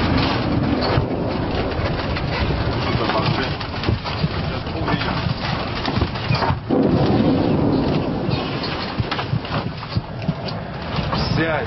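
A vehicle's engine rumbles steadily as it drives along.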